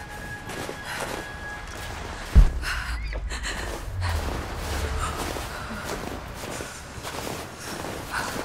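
Wind howls steadily outdoors.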